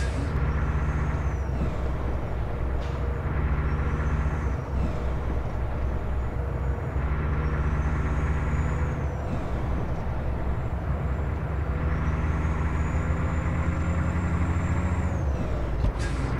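A truck engine drones steadily, its pitch dropping and rising again with each gear change.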